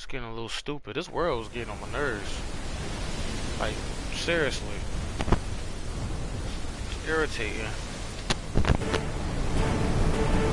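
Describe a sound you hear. Stormy wind and crashing waves roar steadily.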